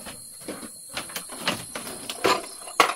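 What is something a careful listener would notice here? A plastic bowl knocks and rattles.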